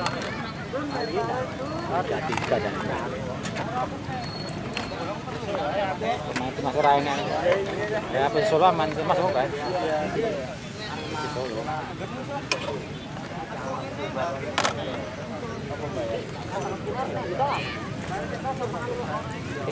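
A crowd of people chatters and calls out at a distance outdoors.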